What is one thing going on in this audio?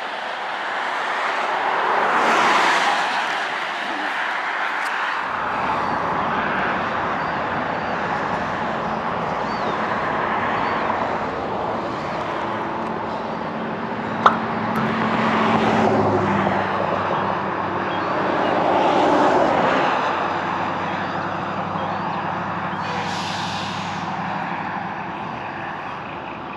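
Wind blows across an outdoor microphone.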